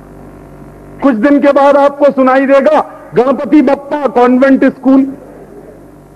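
A man speaks loudly and with animation into a microphone, heard through a loudspeaker.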